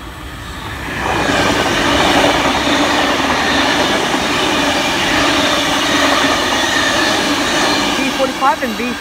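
A passenger train rushes past at speed with a loud rumbling roar.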